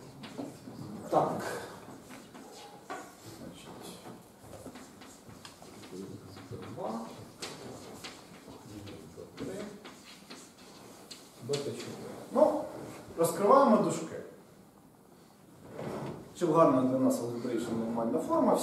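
A man lectures in a room with some echo, speaking calmly.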